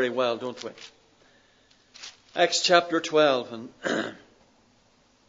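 An older man speaks calmly into a microphone, in short phrases.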